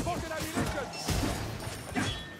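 A magic blast bursts with a crackle.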